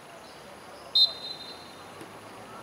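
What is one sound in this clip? A referee's whistle blows a short shrill blast.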